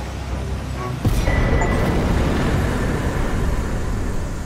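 A triumphant chime rings out.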